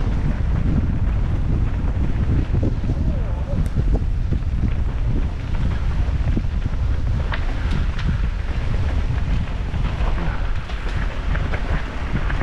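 A bicycle chain and frame clatter over bumps.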